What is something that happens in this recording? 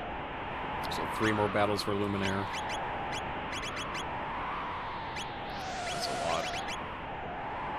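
Short electronic menu blips tick in quick bursts.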